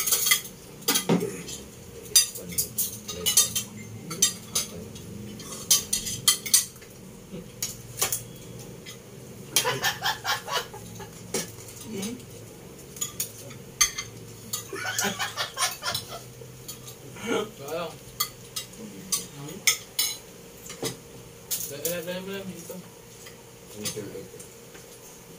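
Men and women talk casually close by.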